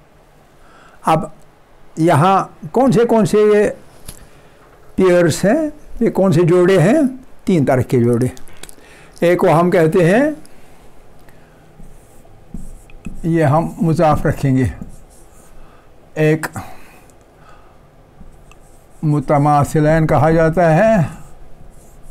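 An elderly man speaks calmly in short phrases, heard closely through a microphone.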